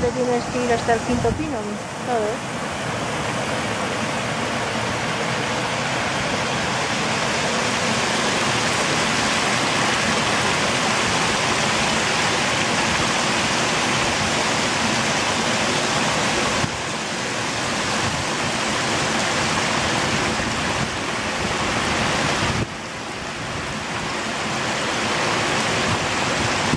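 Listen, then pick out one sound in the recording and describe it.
Water rushes and splashes steadily down a narrow stone channel close by.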